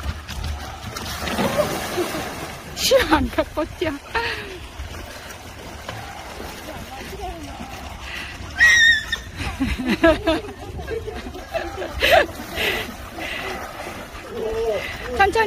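Water splashes as a man wades through a shallow pool.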